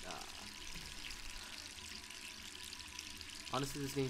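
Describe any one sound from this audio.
Tap water runs into a sink.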